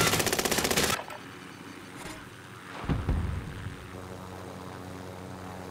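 A helicopter engine hums steadily.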